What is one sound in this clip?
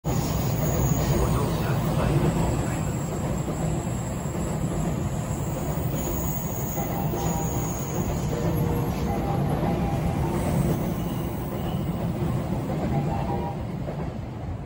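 A high-speed train rumbles and hums steadily as it slowly rolls past nearby.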